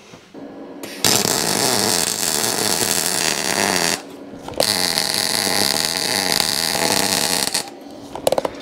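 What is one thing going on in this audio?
A welder crackles and buzzes steadily in bursts.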